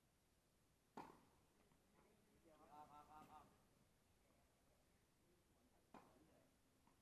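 A tennis ball is struck sharply by a racket, echoing outdoors.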